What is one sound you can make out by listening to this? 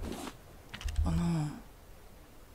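A short game chime sounds as an item is picked up.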